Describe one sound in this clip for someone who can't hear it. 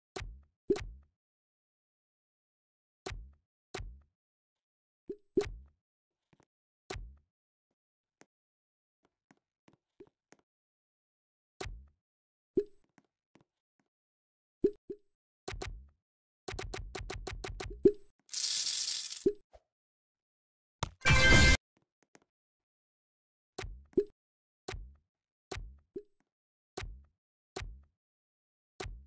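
Soft game menu clicks pop now and then.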